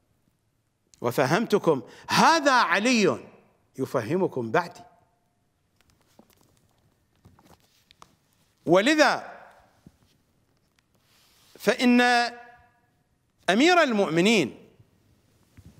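A middle-aged man speaks slowly and deliberately into a close microphone, with long pauses.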